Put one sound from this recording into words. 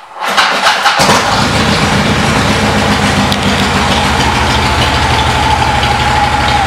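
A motorcycle engine idles with a steady, deep rumble.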